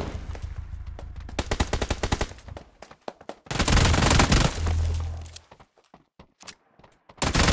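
A video game assault rifle fires in rapid bursts.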